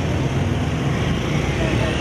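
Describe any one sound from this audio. A motorbike engine passes close by.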